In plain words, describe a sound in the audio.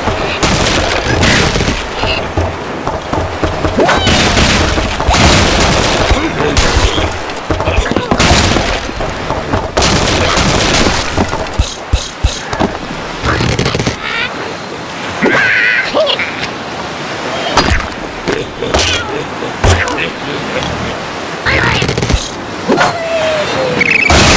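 A slingshot snaps as it launches a bird.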